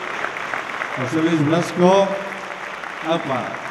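A man speaks into a microphone over a loudspeaker in a large echoing hall.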